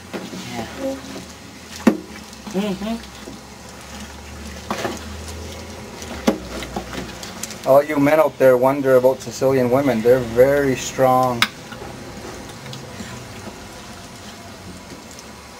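A wooden spoon stirs and squishes soft tomatoes.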